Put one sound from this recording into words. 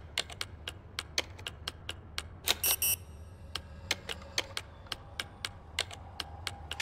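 Buttons on an electronic keypad click in quick taps.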